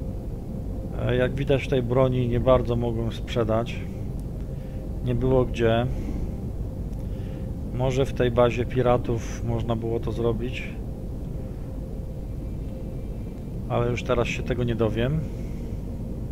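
A man speaks calmly into a headset microphone.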